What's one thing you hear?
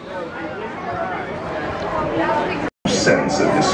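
A crowd of people chatters outdoors close by.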